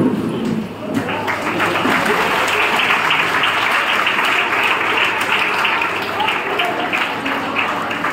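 A large crowd of children cheers and shouts loudly in an echoing hall.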